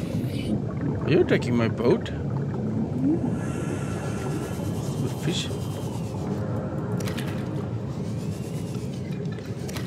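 A small underwater vehicle hums steadily as it glides through water.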